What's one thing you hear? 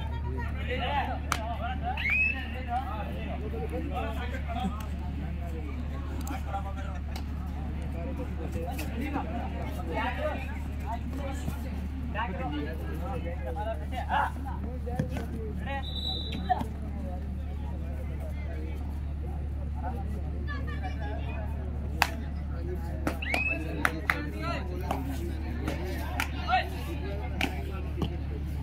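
A crowd of spectators murmurs and chatters in the background.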